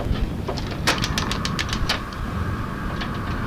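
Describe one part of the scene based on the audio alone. A gas flame hisses steadily on a stove.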